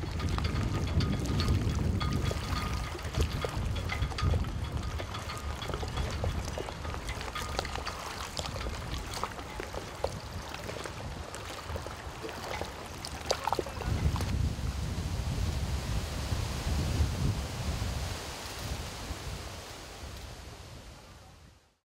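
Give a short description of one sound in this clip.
Strong wind gusts and rumbles outdoors.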